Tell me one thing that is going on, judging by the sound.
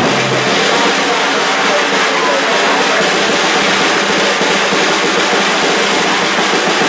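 A drummer plays a drum kit with crashing cymbals.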